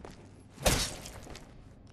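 A heavy blow thuds against a body.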